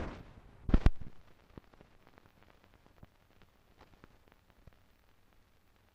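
Old film crackles and pops with faint clicks.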